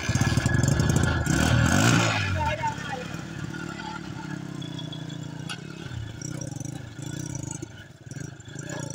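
A motorcycle engine idles nearby, revving up briefly.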